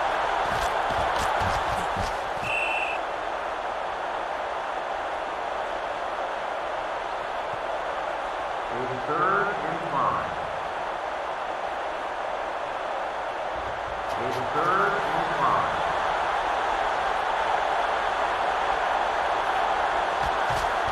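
A stadium crowd roars steadily in the distance.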